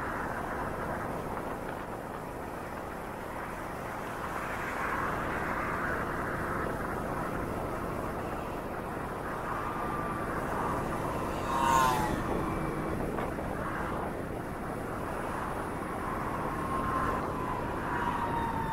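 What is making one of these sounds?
City traffic rolls by on a wide road.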